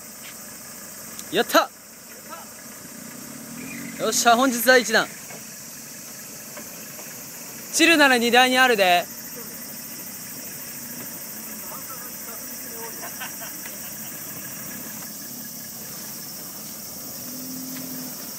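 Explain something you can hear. A diesel four-wheel-drive engine rumbles at low revs as the vehicle crawls over rocky ground.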